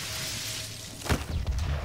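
A double-barrelled shotgun fires a single heavy blast.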